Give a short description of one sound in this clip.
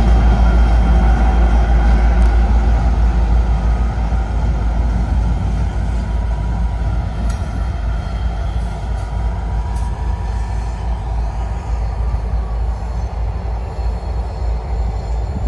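Diesel locomotive engines drone heavily nearby.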